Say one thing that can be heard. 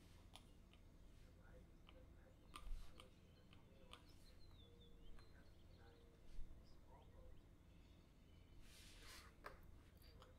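A stylus taps and scratches softly on a tablet.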